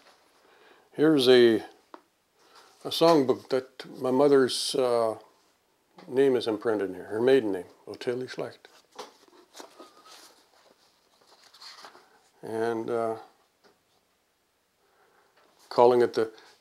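An elderly man speaks calmly and slowly into a close microphone, with pauses.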